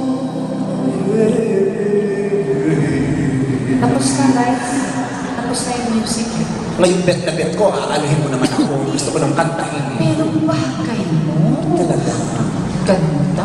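A woman sings into a microphone over a loudspeaker.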